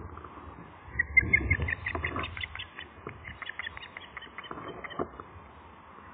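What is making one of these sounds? An osprey calls in a rapid series of shrill chirps.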